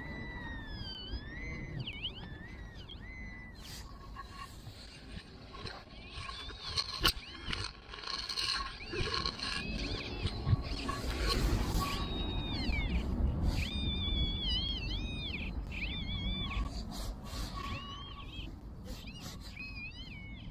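A hand trowel scrapes and digs into soil.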